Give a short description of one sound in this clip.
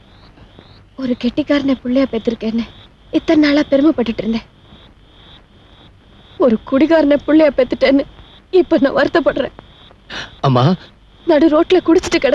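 A woman speaks tearfully and with emotion, close by.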